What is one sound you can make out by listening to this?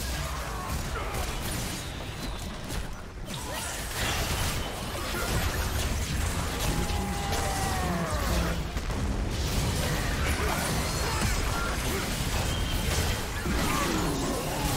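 Game spell effects and weapon hits clash and crackle throughout a fight.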